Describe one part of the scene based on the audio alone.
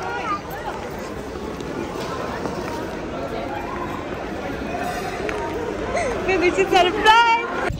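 A crowd of people chatters in a large echoing hall.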